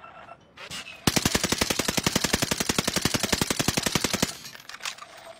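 Rapid automatic gunfire rattles in a video game.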